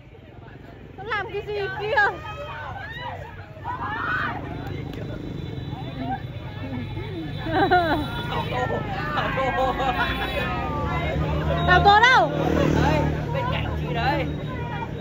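Young women squeal and shriek excitedly close by.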